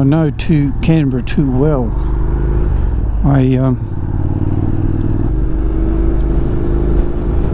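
Wind rumbles past the rider.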